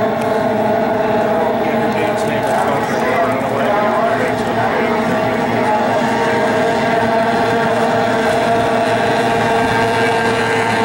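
Several racing boat engines whine loudly across the water.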